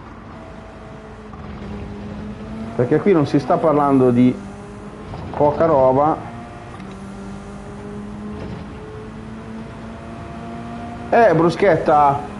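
A racing car engine revs and whines steadily, rising in pitch as it speeds up.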